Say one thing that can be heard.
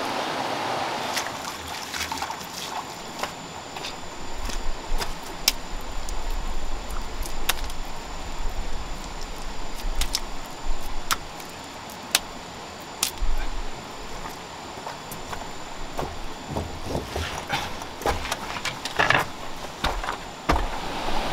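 A stream flows nearby.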